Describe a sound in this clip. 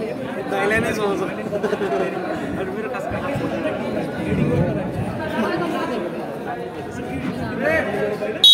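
Young men call out to each other in a large echoing hall.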